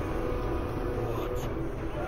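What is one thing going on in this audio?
A man exclaims loudly in surprise.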